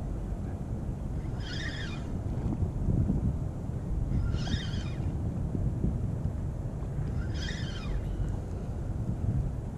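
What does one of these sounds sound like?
Wind blows steadily and rumbles outdoors by open water.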